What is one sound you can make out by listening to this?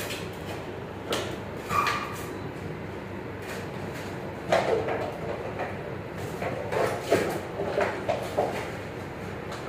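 Puppies scuffle and patter on a hard floor.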